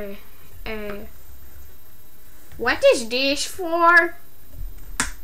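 A boy talks playfully and close into a microphone.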